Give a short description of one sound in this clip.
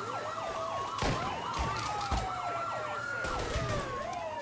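Gunshots crack now and then.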